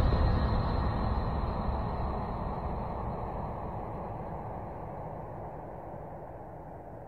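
Synthesizer music plays and slowly fades.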